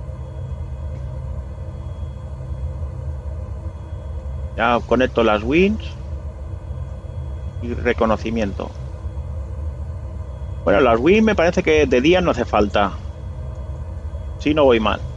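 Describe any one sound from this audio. A jet engine idles with a low, steady hum.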